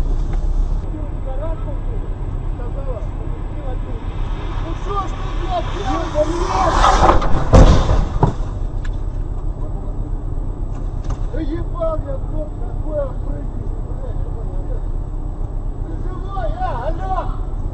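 Men shout outdoors, heard through a windshield.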